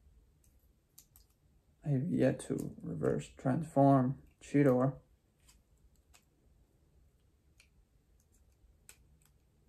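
Plastic toy parts click faintly.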